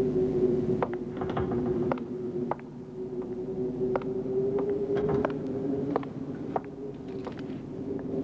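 Hard-soled shoes click on stone steps as a man walks.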